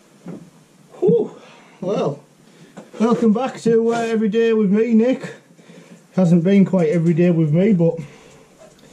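A man speaks calmly, close by.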